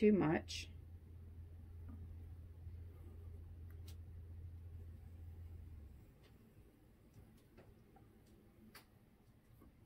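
Wooden sticks scrape and tap lightly on a metal tabletop.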